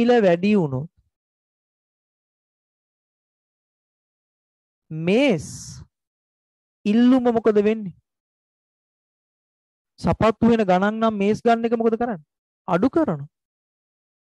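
A young man speaks into a close microphone in short bursts, explaining with animation.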